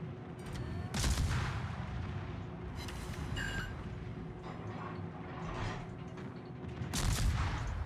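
Heavy naval guns fire in loud booming blasts.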